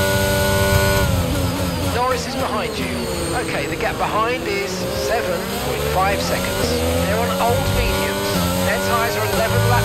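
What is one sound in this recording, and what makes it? A racing car engine drops its revs sharply as the car brakes and shifts down.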